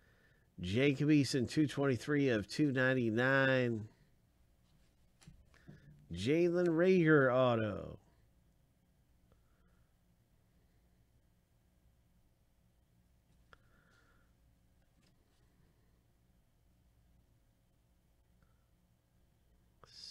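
Trading cards slide and rustle softly between gloved hands.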